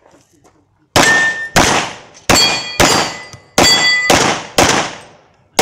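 A handgun fires several quick shots close by, outdoors.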